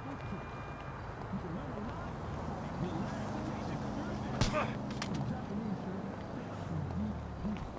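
A man's footsteps scuff on pavement.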